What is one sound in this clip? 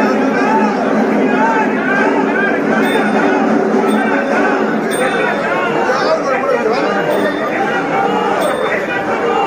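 A large crowd of men chants loudly together outdoors.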